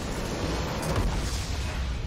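A large explosion booms and rumbles.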